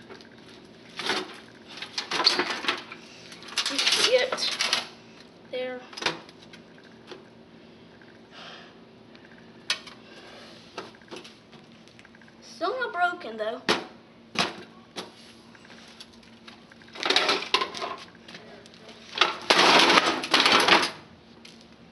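A television set crashes and cracks loudly against concrete.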